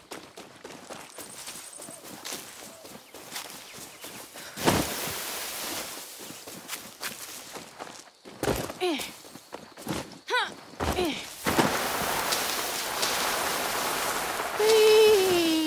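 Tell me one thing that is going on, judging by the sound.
Leafy branches rustle as they are pushed aside.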